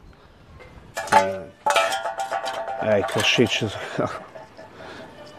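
Metal pots clank and ring as they are moved.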